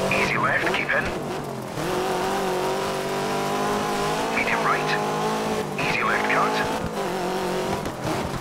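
Tyres skid and crunch on loose gravel.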